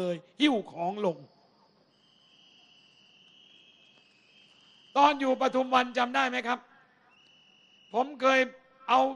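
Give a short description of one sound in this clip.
A middle-aged man speaks with animation into a microphone through loudspeakers.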